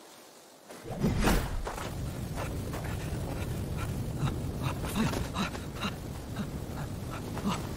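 A ring of fire flares up and roars steadily.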